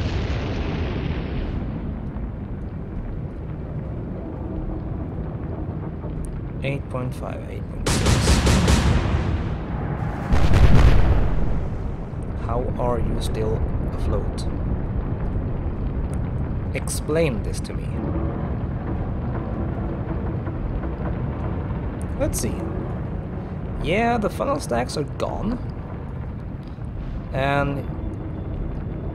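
Heavy rain and wind roar over a stormy sea.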